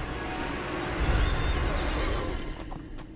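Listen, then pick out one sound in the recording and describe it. A magical burst flares with a loud whoosh.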